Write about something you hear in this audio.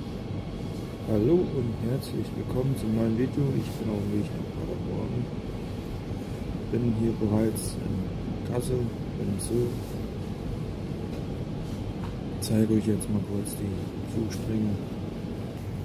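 A man talks calmly, close by.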